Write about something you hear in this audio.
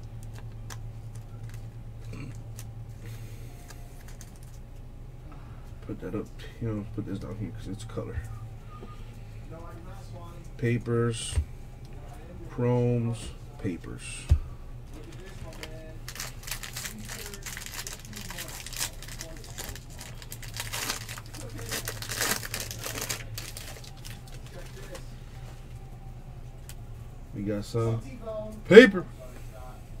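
Trading cards rustle and slide against each other as they are shuffled.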